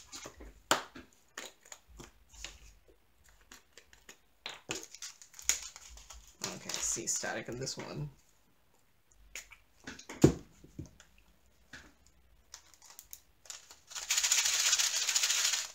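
A plastic bag crinkles in someone's hands.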